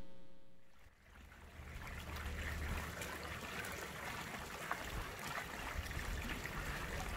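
Water splashes steadily from a fountain into a basin.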